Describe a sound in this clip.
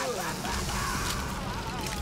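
A burst of flames roars.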